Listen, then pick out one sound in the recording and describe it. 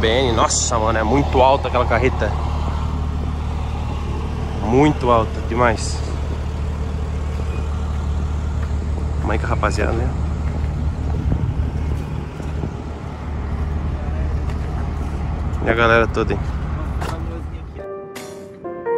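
A diesel truck engine idles with a steady low rumble.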